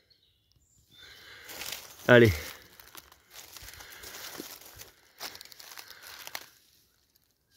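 Dry leaves rustle and soil crackles as a mushroom is pulled from the ground.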